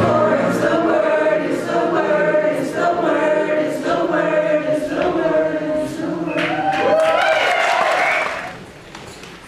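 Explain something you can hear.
Pop music with a steady beat plays loudly in a hall.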